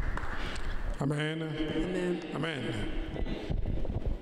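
A man speaks loudly and with animation through a microphone in an echoing hall.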